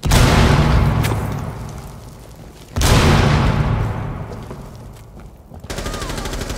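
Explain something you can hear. Loud explosions boom and rumble away in a large echoing hall.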